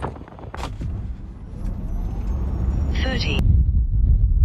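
An electric car hums as it accelerates hard.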